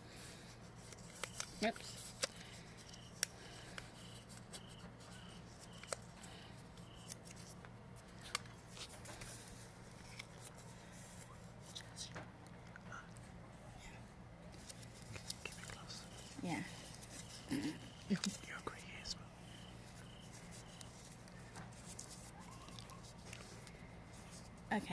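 Paper rustles and crinkles softly between fingers.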